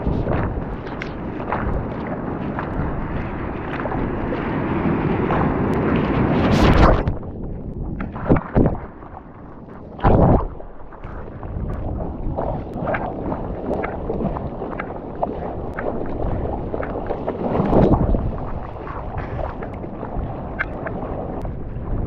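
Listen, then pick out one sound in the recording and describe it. Hands paddle and splash through the water.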